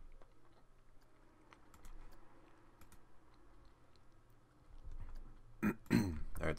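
A game menu clicks softly as it opens and closes.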